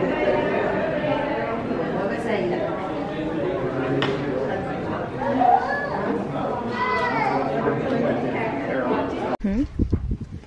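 Adult men and women chat quietly in an indoor room.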